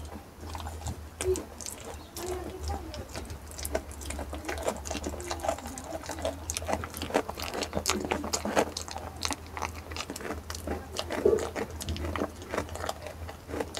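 A goat chews fruit with wet crunching and smacking sounds, close up.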